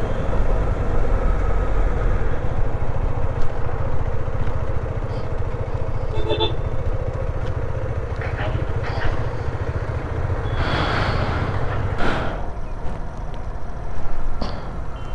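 A motorcycle engine idles and rumbles close by.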